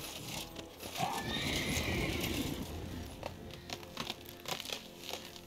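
Tall grass rustles and swishes as someone walks through it.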